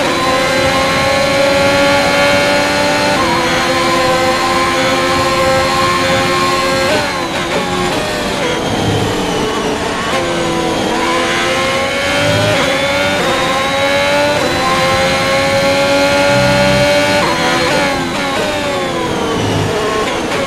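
A racing car engine screams at high revs, dropping in pitch for corners and climbing again down the straights.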